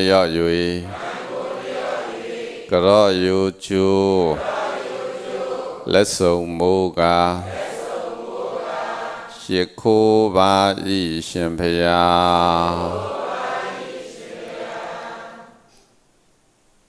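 A man speaks calmly and slowly into a microphone, close by.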